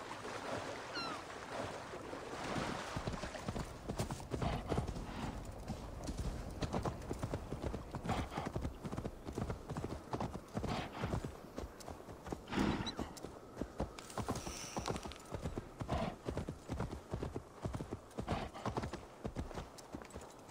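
Hooves thud steadily on the ground as a mount trots along.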